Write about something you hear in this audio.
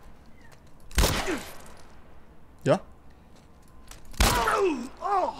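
Pistol shots bang sharply.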